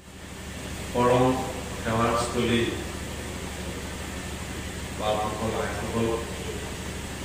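A young man chants in a singing voice through a microphone.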